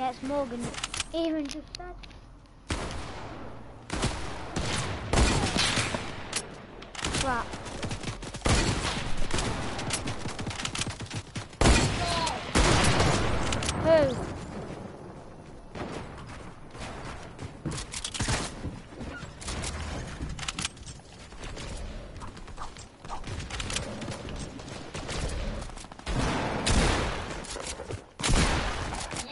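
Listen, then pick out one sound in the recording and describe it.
Gunshots from a video game crack in quick bursts.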